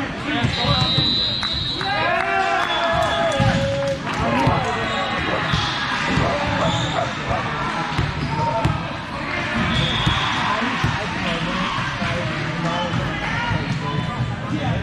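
Many young people shout and chatter, echoing in a large hall.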